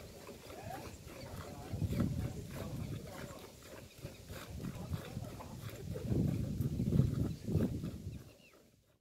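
Milk squirts rhythmically into a metal pail as a cow is milked by hand.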